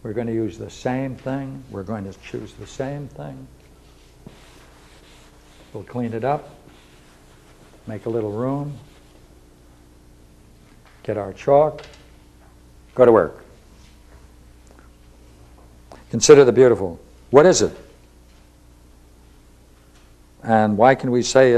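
An elderly man speaks slowly in a lecturing tone, with long pauses.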